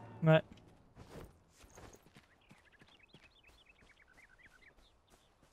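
Footsteps patter quickly over soft ground.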